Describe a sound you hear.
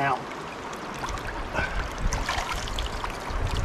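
A rock splashes as it is set down in the water.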